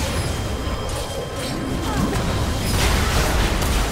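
Magic blasts burst loudly.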